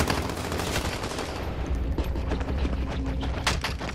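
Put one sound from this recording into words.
A heavy blow lands with a dull thud.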